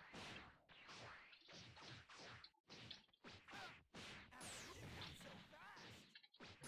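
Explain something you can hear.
Fighting game punches and kicks land in quick bursts.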